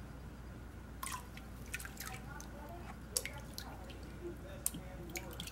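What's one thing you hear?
Water splashes and drips in a plastic pan.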